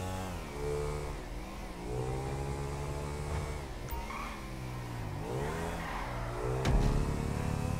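A motorcycle engine revs and hums steadily, rising and falling in pitch.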